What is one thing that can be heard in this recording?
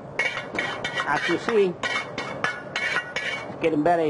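Food slides from one metal pan into another.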